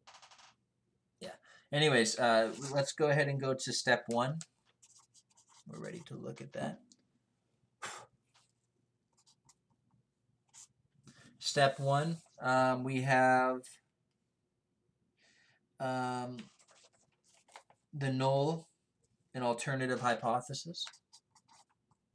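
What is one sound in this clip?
A marker squeaks faintly as it writes on paper.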